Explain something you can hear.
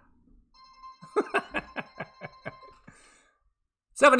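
A slot machine game jingles and clinks coins for a win.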